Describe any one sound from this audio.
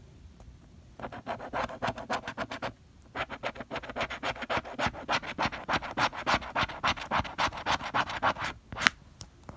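A plastic scraper scratches rapidly across a card.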